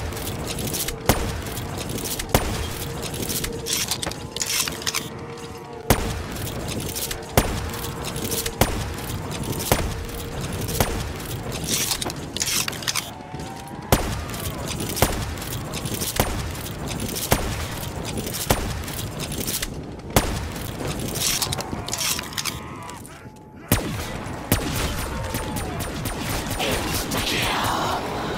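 Sniper rifle shots crack loudly at a steady pace.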